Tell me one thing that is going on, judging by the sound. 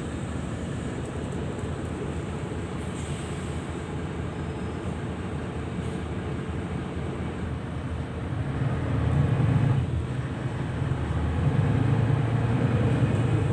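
A bus engine rumbles low and steady, growing louder as the bus picks up speed.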